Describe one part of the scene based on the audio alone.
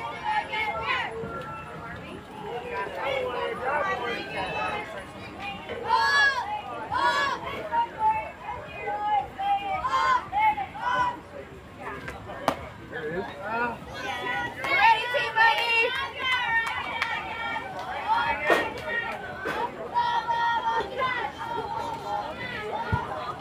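Young girls shout and cheer nearby.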